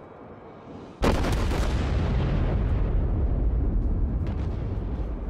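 Heavy ship guns fire with a sudden loud boom and a long, deep rumble.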